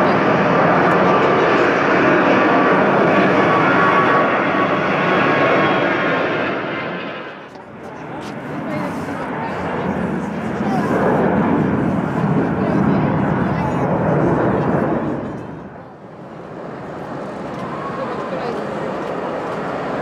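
Jet engines roar loudly as airliners take off and climb.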